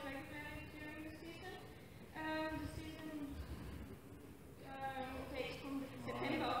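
A woman sings on a stage in a large hall, heard from a distance.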